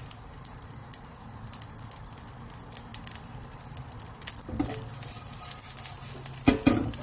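Many mealworms rustle and tick softly as they crawl over one another.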